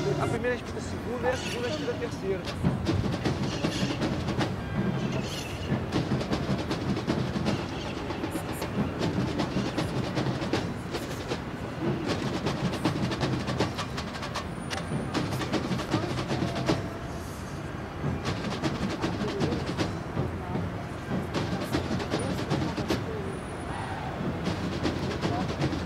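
Wind blusters steadily across the microphone outdoors.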